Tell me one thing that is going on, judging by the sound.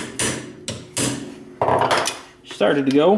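A wrench clanks and ratchets against metal.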